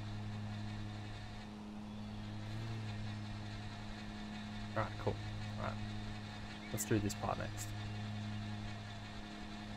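A lawn mower engine hums steadily.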